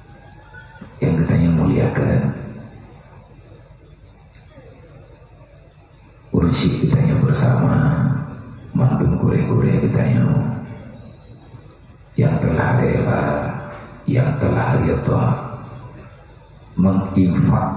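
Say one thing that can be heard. A man speaks with feeling into a microphone, heard through loudspeakers in a large room, in short bursts with pauses.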